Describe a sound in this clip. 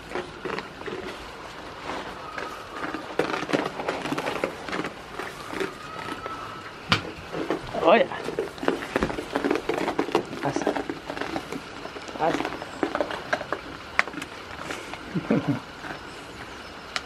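Goats rustle and munch in dry straw.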